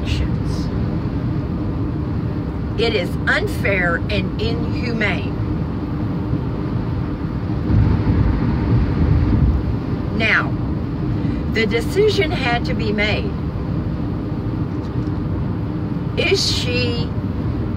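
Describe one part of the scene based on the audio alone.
A car engine and tyres rumble steadily on a road.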